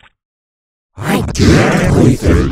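A loud, harshly distorted voice blares.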